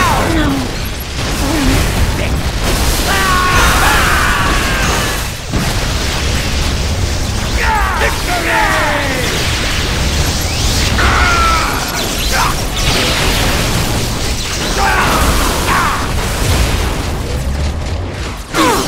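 A deep rumble roars steadily throughout.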